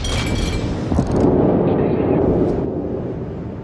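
Shells explode with heavy booms.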